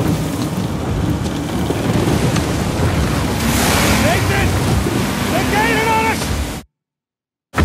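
Heavy rain and wind roar in a storm.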